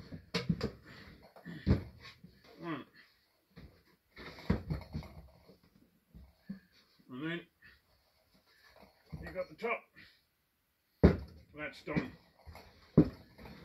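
A wooden box knocks and thuds against a bench.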